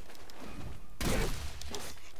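A staff swings through the air and strikes with a whoosh.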